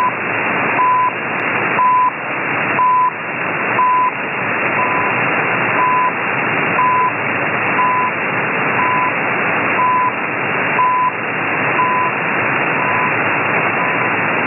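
Shortwave radio static hisses steadily.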